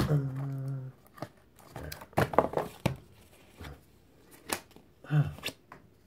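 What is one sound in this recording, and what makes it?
Cardboard packaging rustles and crinkles in hands.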